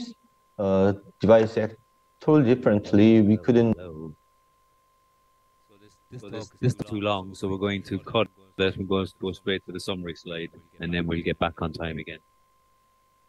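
A man speaks calmly through a microphone on an online call, pausing between phrases.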